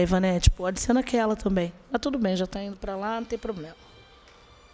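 A woman speaks with animation into a microphone, heard close.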